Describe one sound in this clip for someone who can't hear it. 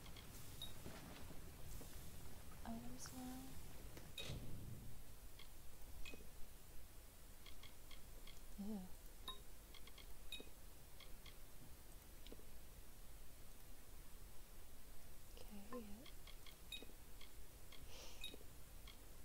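Soft menu clicks and chimes tick now and then.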